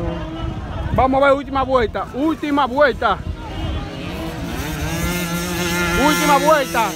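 A man nearby shouts with excitement outdoors.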